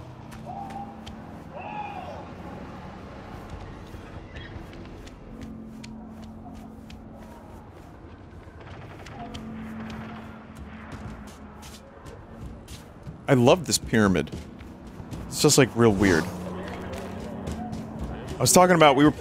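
Footsteps tap steadily on hard ground and stairs.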